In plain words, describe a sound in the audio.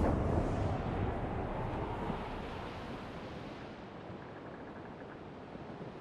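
Waves splash against the hull of a sailing ship and slowly fade.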